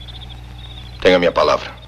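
A second man answers in a firm voice.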